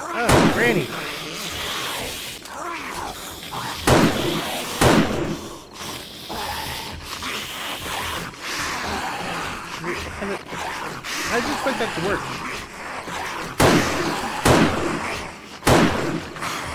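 Rifle shots crack sharply, one at a time, with echoes.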